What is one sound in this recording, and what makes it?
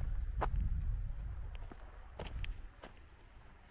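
Wind gusts across an open hillside.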